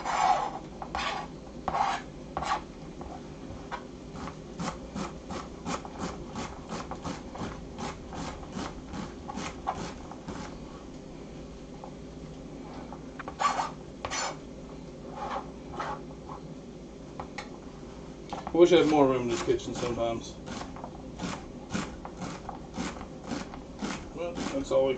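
A knife chops vegetables on a cutting board with quick, steady taps.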